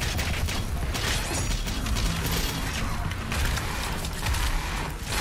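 Rapid gunfire blasts loudly and repeatedly.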